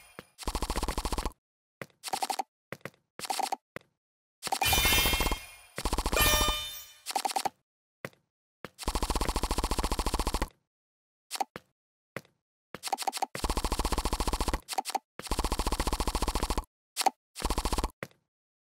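Short electronic game sound effects play in quick bursts.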